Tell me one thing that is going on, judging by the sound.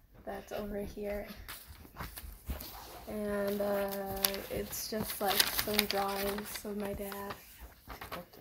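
A young girl sings a steady tune nearby.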